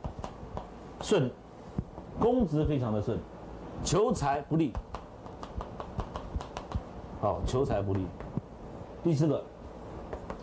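A man lectures in short bursts, heard through a microphone.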